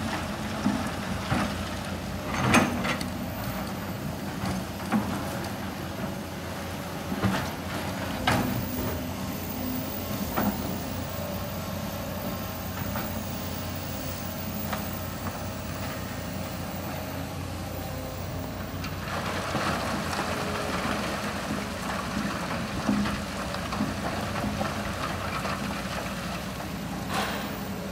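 Rocks clatter and thud as an excavator bucket scoops and dumps them.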